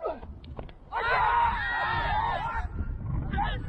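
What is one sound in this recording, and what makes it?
Men shout an appeal from across a field.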